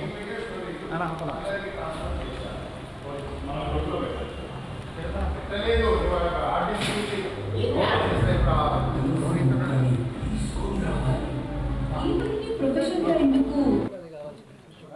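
Several men talk and call out loudly nearby.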